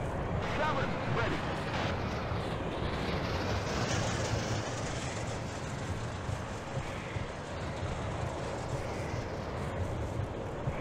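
Tank tracks clank and rattle as a tank rolls by.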